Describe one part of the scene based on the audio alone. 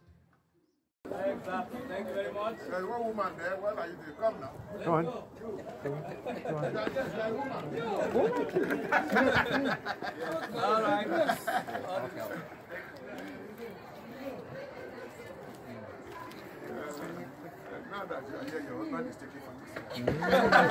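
A crowd of men and women chatter and talk over one another outdoors.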